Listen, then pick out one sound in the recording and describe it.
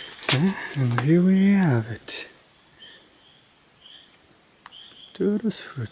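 Leaves and twigs rustle softly as a hand handles a plant stem.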